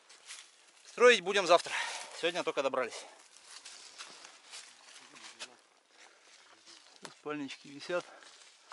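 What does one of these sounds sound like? A man speaks animatedly close by.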